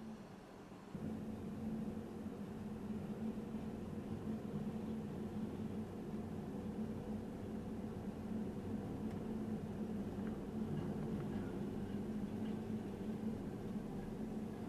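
A small diesel road roller's engine runs.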